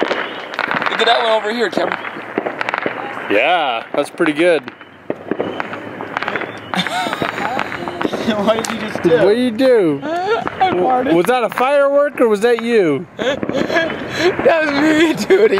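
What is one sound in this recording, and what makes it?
A young man talks and jokes loudly close by.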